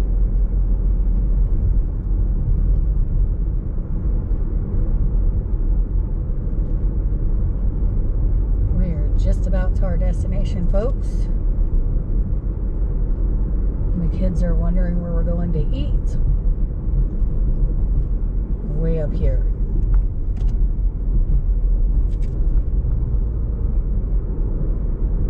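A car engine hums steadily with road noise from inside the car.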